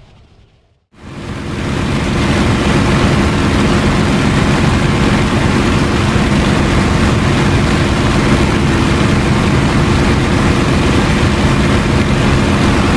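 A propeller plane's engine roars loudly and steadily from inside the cockpit.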